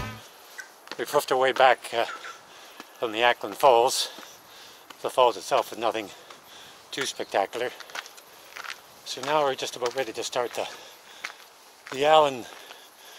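An older man talks calmly and close by, in short bursts.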